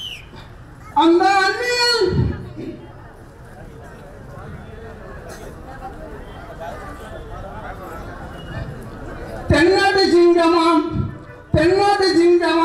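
A middle-aged man sings loudly through a microphone and loudspeaker, holding long notes.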